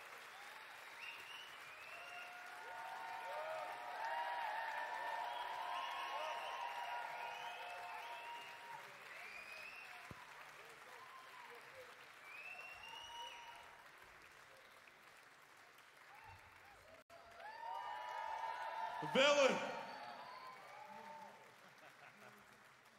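A large crowd cheers, whistles and shouts in a big hall.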